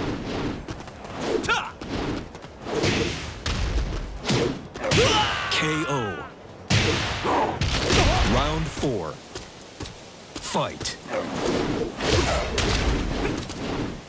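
Blows land with heavy, punchy thuds in quick bursts.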